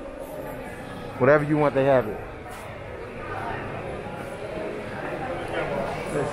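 Distant voices murmur in an echoing indoor space.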